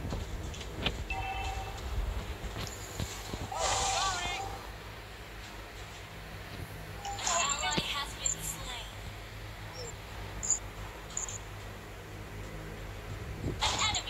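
Electronic game sound effects chime and whoosh in short bursts.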